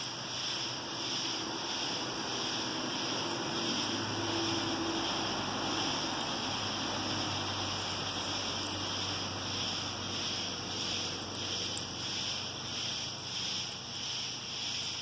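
A cat rolls and rubs softly on gritty ground.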